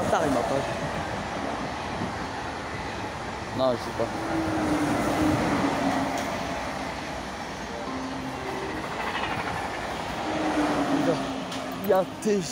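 A high-speed train rushes past with a loud steady roar.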